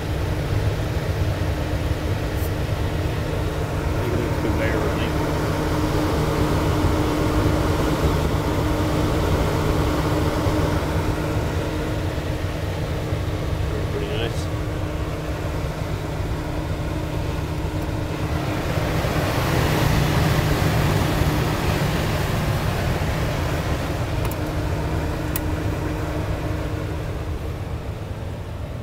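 A conveyor oven hums and whirs steadily with a fan running.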